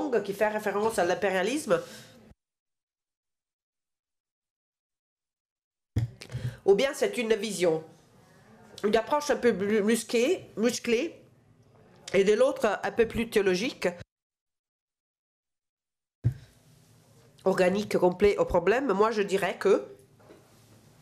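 A middle-aged woman asks a question calmly into a microphone, with short pauses.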